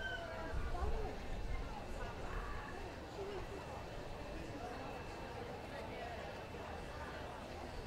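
A crowd of people chatters in the background outdoors.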